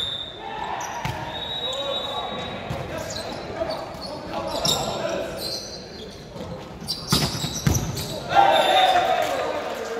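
A volleyball is hit with hands and arms during a rally.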